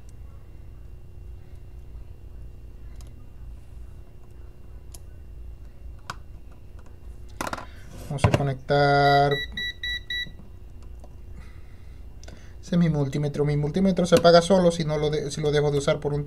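A small tool clicks and scrapes against a phone's casing.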